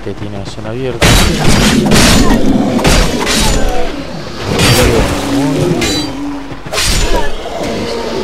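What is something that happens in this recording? Swords clash and strike with sharp metallic hits.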